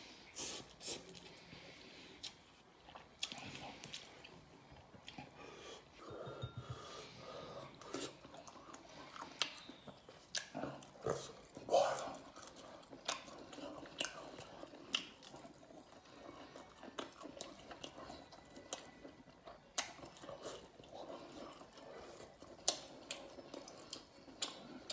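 A man chews food with wet, smacking sounds, close up.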